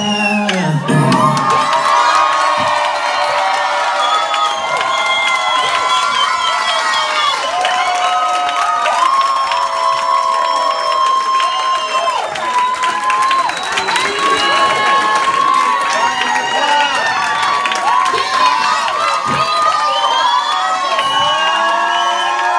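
A crowd of young women screams and cheers loudly close by.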